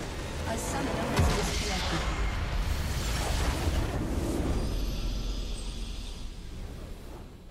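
A large explosion booms and rumbles, then slowly fades.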